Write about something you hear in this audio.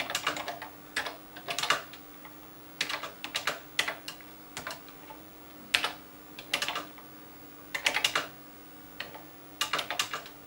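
Keys clack in quick bursts on a computer keyboard.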